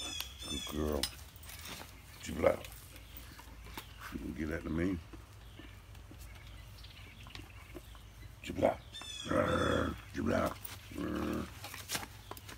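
An older man talks calmly close by.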